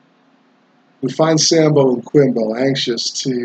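A middle-aged man speaks with animation, close to the microphone.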